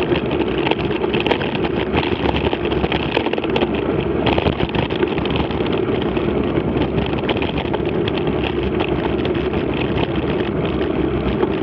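Tyres crunch steadily over a gravel track.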